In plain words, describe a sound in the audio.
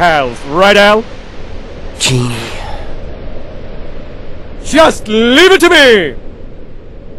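A man speaks with animation in a deep, exaggerated voice.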